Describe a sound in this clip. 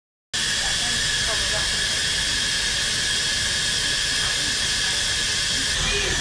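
A small steam engine hisses steadily.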